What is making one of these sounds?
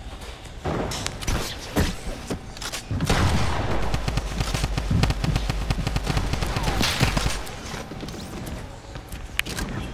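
Wooden walls and ramps clatter quickly into place.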